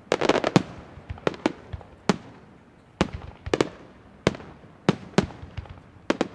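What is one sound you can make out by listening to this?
Fireworks burst with sharp, loud bangs at irregular intervals.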